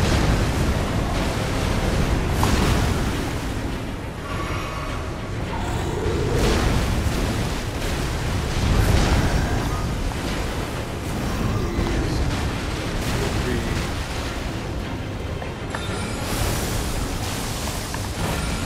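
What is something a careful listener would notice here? Heavy metal weapons clash and strike with loud impacts.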